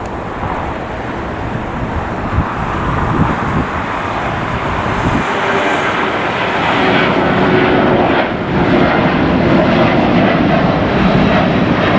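A twin-engine jet airliner roars at takeoff power as it climbs away.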